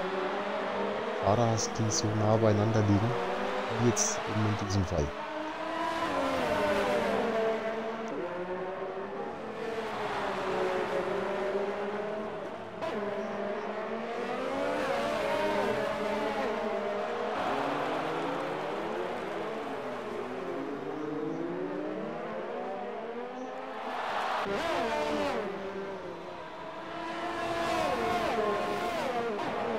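Racing car engines scream and rev up and down as they race past.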